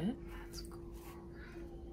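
A wet brush dabs on a paper towel.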